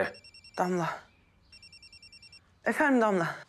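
A phone rings with a beeping tone.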